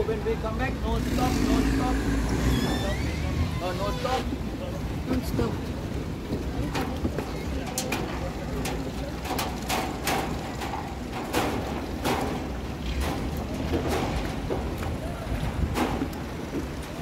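Footsteps clank on a metal walkway.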